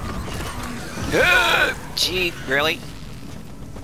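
A mechanical creature lets out loud metallic screeches.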